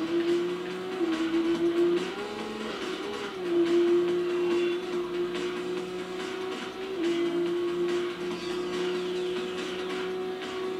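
A racing car engine roars steadily at high revs, shifting gears as it speeds up.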